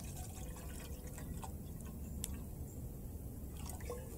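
Liquid pours into a metal cup.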